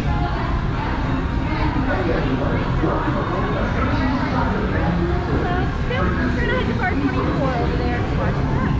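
A crowd of people chatter in an echoing indoor space.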